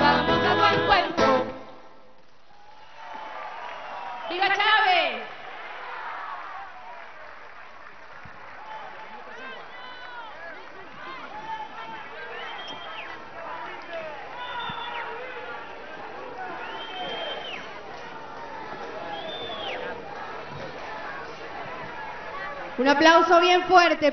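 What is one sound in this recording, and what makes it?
A young woman sings loudly into a microphone over loudspeakers.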